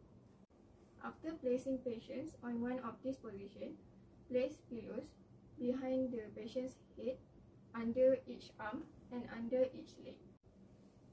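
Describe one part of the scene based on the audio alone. A young woman speaks calmly and clearly nearby, giving instructions.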